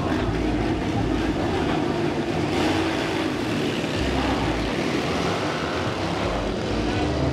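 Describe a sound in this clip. Speedway motorcycle engines roar loudly nearby.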